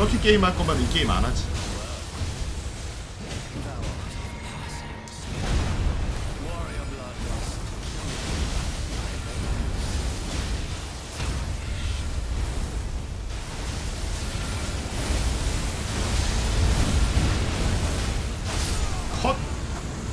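Weapons clash and magic blasts boom in a fight.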